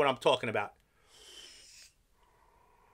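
A man draws in a puff with a soft hiss.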